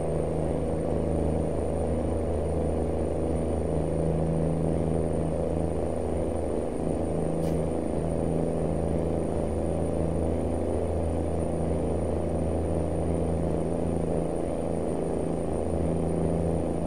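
Tyres roll over the road with a low hum.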